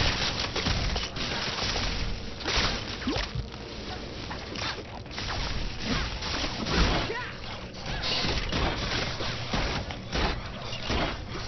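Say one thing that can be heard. Game sound effects of punches and blasts clatter and crash.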